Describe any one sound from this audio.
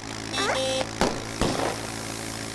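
A cartoonish crash thumps loudly.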